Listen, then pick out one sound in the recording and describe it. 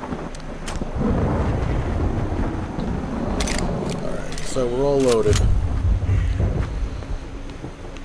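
A young man talks into a microphone close by.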